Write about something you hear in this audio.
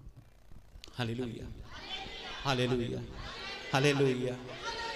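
An older man sings slowly into a microphone, heard over a loudspeaker.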